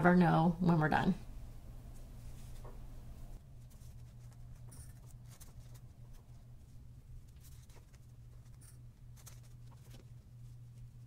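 Paper crinkles softly between fingers.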